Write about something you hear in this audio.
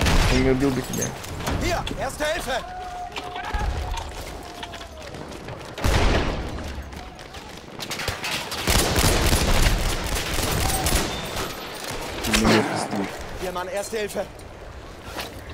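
Guns fire in loud, sharp bursts.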